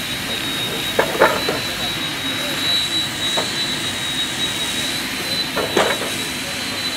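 Wooden planks knock and clatter against each other.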